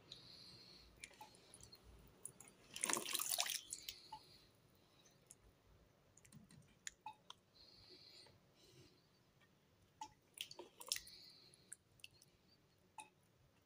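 Small fruits knock and clatter against each other in water.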